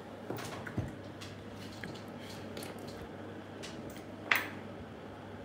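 Small jade pieces click together in a hand.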